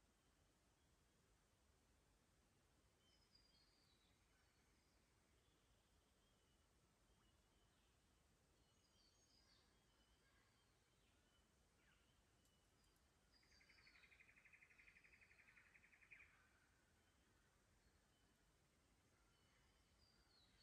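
A shallow stream trickles gently over rocks.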